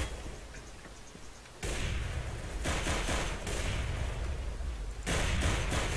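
A pistol fires a couple of sharp shots.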